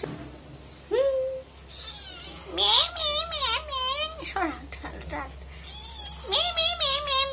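A kitten mews repeatedly in high, insistent cries.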